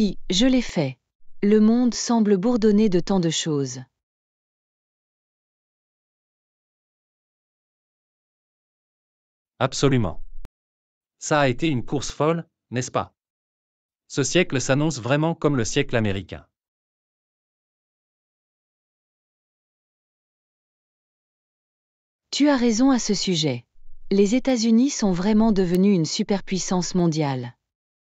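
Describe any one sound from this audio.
A woman speaks calmly and clearly, as if reading out.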